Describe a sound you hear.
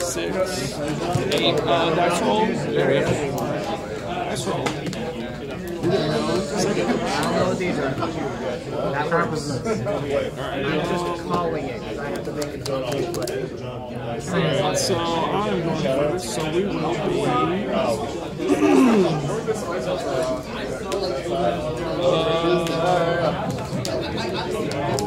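Playing cards slide and rustle on a table as they are handled.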